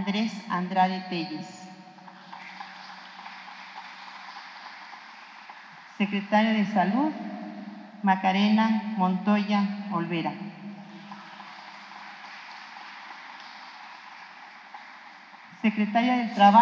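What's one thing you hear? A middle-aged woman speaks calmly into a microphone, pausing between phrases.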